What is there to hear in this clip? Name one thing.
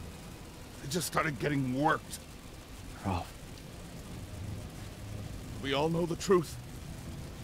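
A man speaks in a low, gruff voice, close by.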